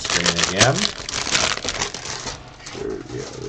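A plastic bag crinkles as it is shaken out.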